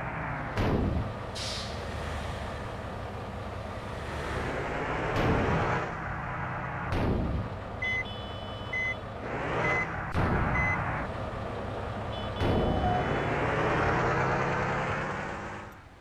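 A diesel light truck engine runs as the truck drives along a road.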